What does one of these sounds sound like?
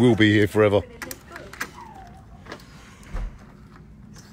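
A metal film reel clicks and clatters as it is handled.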